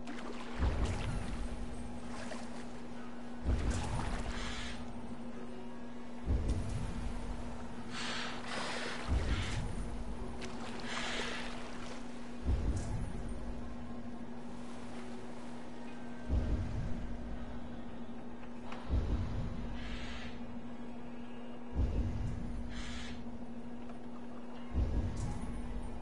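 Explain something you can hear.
Water laps steadily against a small wooden boat.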